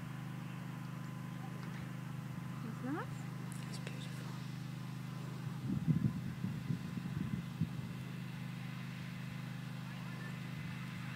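A horse canters across grass with soft, distant hoofbeats.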